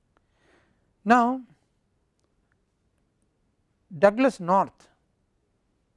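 An elderly man speaks calmly into a clip-on microphone, in short phrases with pauses.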